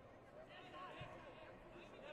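A kick thuds against a body protector.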